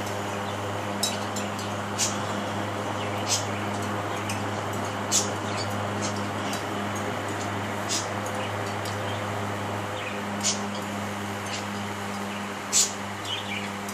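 A knife scrapes and clicks against a sponge.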